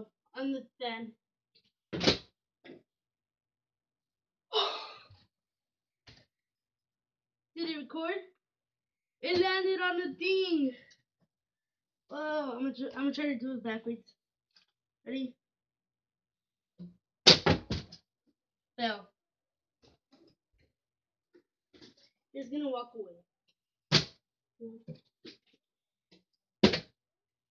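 A plastic bottle crinkles and thumps.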